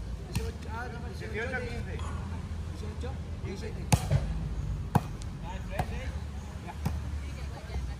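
A volleyball is struck with sharp, hollow slaps.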